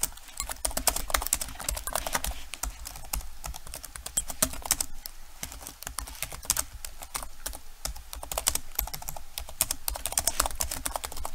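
Keyboard keys clatter with quick typing.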